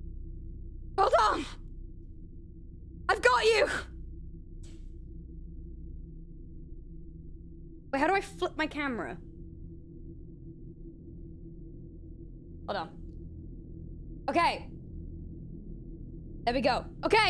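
A young woman speaks in short bursts into a close microphone.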